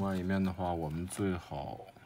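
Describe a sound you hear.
A hand rubs across a circuit board on paper.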